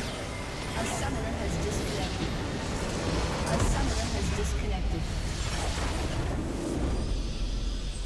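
Game battle effects crash and boom loudly.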